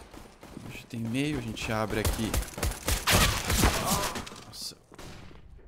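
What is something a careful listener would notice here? A man talks excitedly and loudly into a microphone.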